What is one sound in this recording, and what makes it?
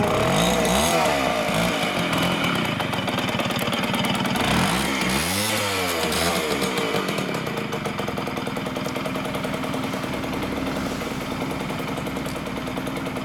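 A motorcycle engine idles close by with a steady, throbbing rumble.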